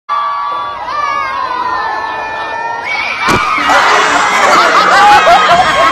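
Young men shout and cheer excitedly close by.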